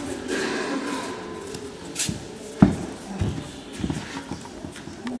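Bare feet thump softly on padded mats.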